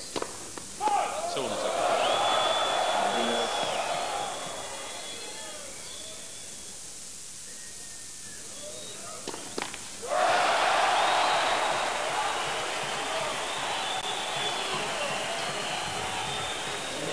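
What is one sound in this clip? A large crowd cheers and applauds loudly outdoors.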